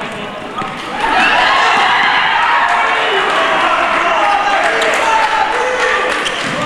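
A crowd of spectators cheers and shouts loudly.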